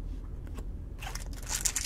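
Foil card packs crinkle and rustle under a hand.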